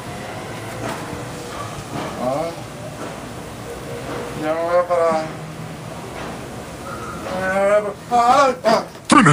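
A man snores loudly.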